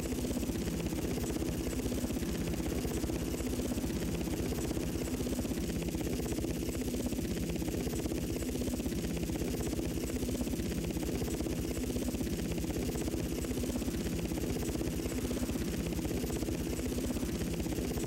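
A video game attack helicopter's rotor thumps in a fast, steady beat.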